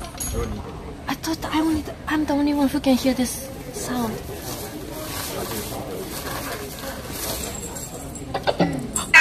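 A young woman talks animatedly close to the microphone.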